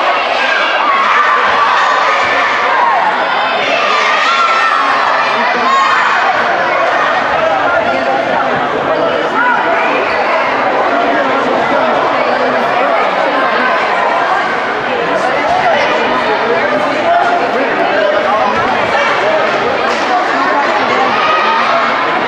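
A crowd of spectators chatters and cheers loudly in a large echoing gym.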